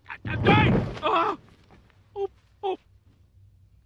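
A man sobs close by.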